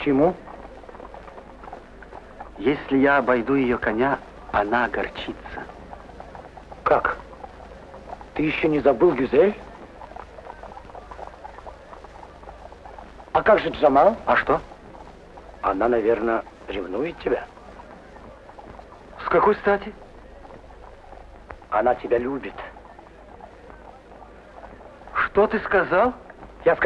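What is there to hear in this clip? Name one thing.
A man speaks calmly in short phrases, heard through an old, hissy recording.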